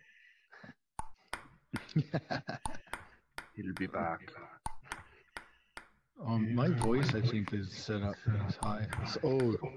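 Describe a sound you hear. A ping-pong ball clicks sharply against a table and paddles in a quick rally.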